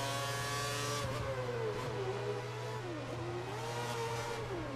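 A racing car engine drops in pitch as the car brakes hard.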